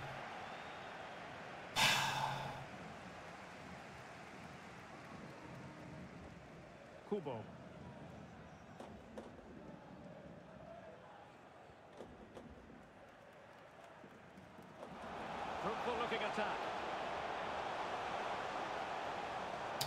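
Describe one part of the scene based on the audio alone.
A stadium crowd murmurs and swells into a roar.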